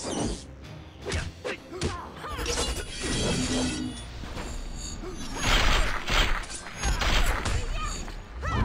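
Punches and kicks land with heavy thuds and whooshes.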